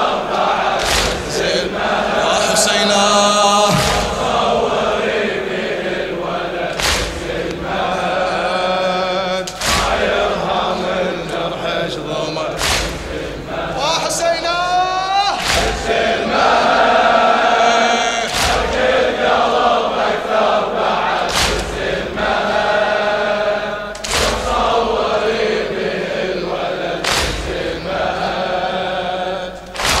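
A man chants loudly and mournfully into a microphone, echoing.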